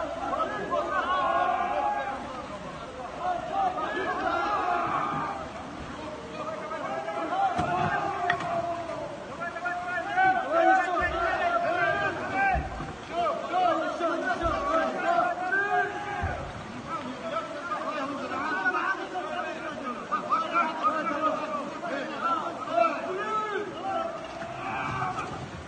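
A crowd of men shout to one another at a distance.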